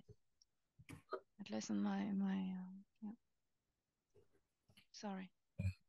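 A woman speaks calmly over an online call, with pauses.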